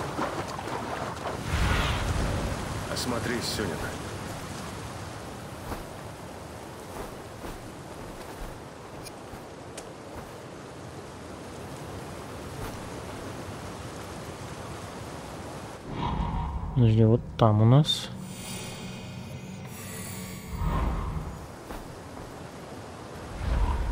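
Wind rushes steadily past a bird in flight.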